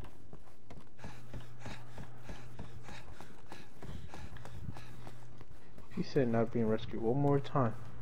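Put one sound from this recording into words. Footsteps run quickly across a stone floor in a large echoing hall.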